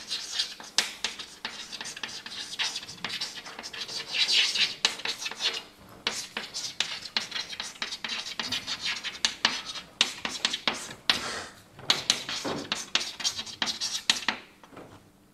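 Chalk taps and scratches rapidly on a chalkboard.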